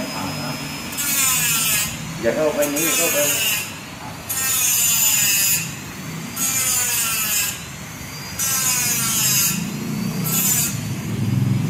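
A small electric cutter grinds through a metal ring in short, whining bursts.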